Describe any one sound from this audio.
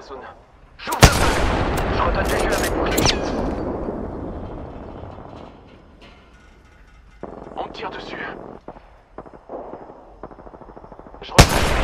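A rifle fires loud, booming shots that ring out and fade slowly.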